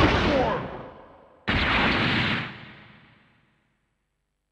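A sword clashes loudly in a fighting game and rings out.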